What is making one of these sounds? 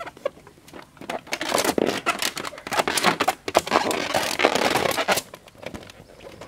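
Rubber balloons squeak and rub as a man handles them.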